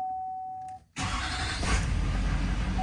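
A truck engine starts up.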